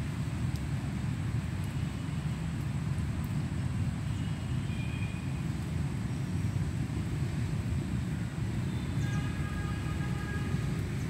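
Strong wind gusts and rumbles outdoors.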